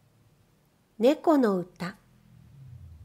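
A cat meows loudly a few times.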